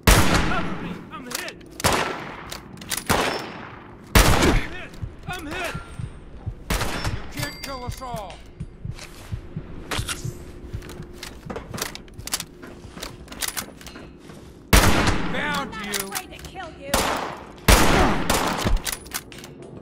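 Gunshots fire loudly, with a ringing echo after each.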